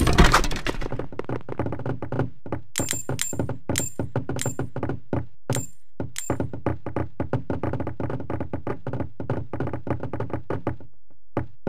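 Quick footsteps patter across a wooden floor.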